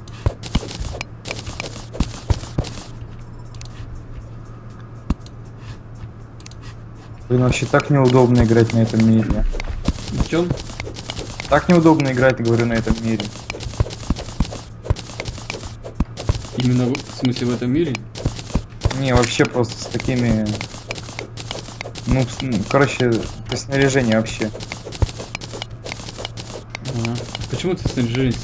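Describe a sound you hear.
A pickaxe chips rapidly at stone and dirt.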